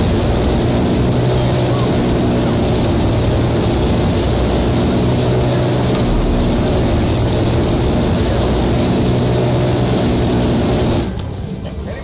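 A helicopter's rotors and engine drone loudly and steadily.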